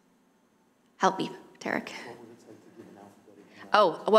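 A man laughs briefly into a microphone.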